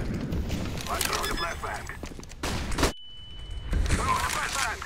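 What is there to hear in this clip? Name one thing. Electronic keypad beeps sound as a code is typed in.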